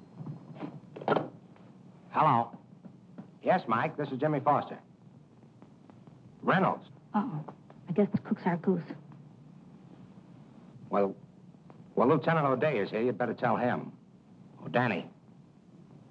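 A man talks on a telephone in short bursts.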